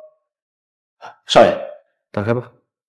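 A young man calls out briefly.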